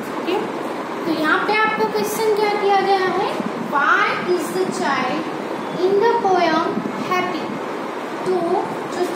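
A young woman speaks clearly and steadily, close by.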